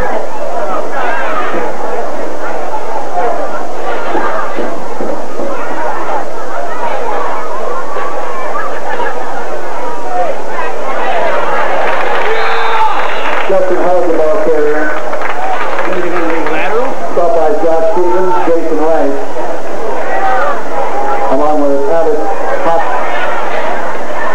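A crowd of spectators cheers and chatters loudly outdoors.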